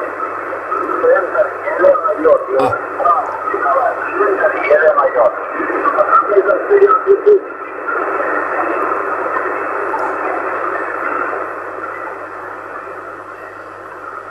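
A radio receiver hisses with static through a small loudspeaker.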